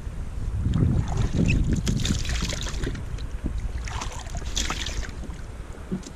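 Water splashes as it is poured out of a scoop.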